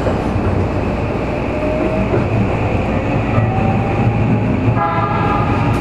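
A train's electric motors whine, rising in pitch.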